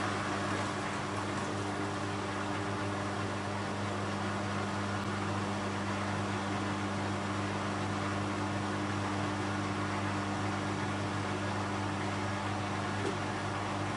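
Laundry tumbles softly in a washing machine drum.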